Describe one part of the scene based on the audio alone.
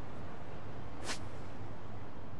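A short game menu chime sounds as a menu opens.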